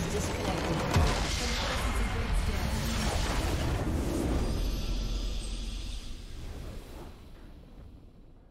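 A loud, rumbling explosion bursts and fades.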